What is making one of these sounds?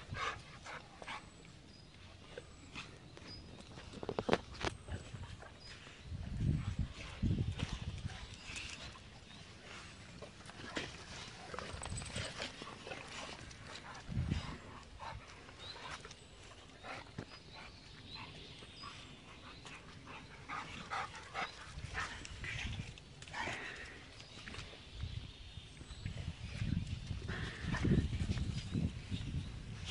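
Paws patter on grass and paving.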